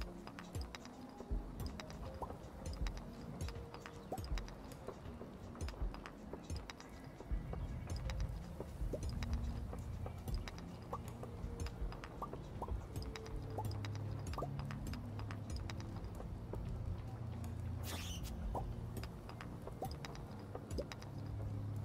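A pickaxe strikes rocks again and again with sharp taps.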